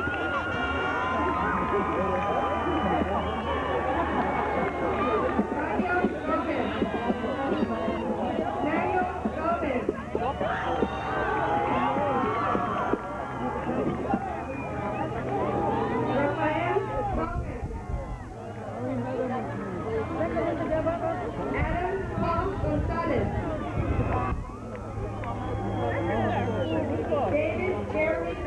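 A crowd of men and women chat outdoors, with overlapping voices close by.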